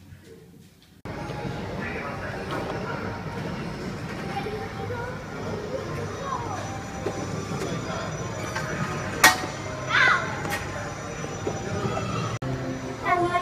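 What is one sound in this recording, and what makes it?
Children call out and play in the background.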